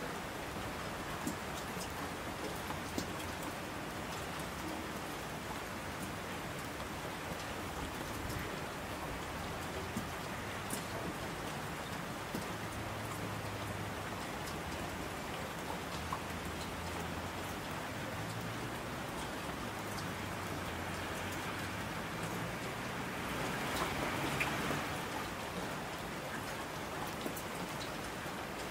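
A swollen river rushes and roars.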